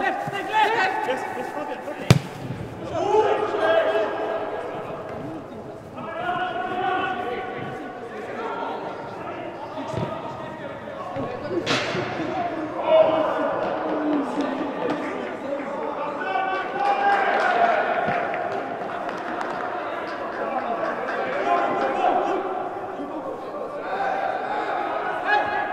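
Young men shout to each other across an echoing indoor hall.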